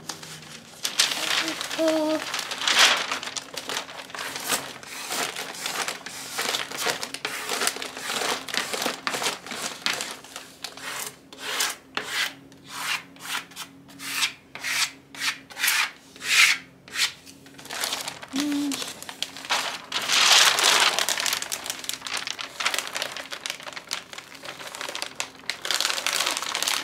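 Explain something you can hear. A plastic sheet crinkles and rustles as it is handled.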